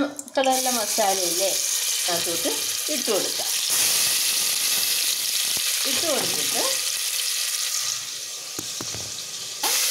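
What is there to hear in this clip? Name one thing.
Food sizzles and crackles in hot oil in a pot.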